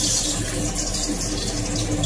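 A metal spoon scrapes against a wok.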